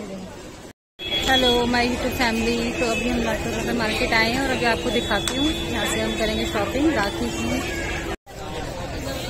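A woman speaks close up with animation.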